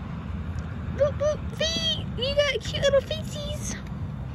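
A cat meows several times in short, rising and falling cries.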